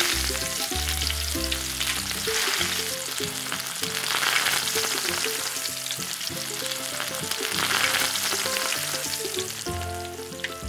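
Food sizzles and crackles as it fries in hot oil.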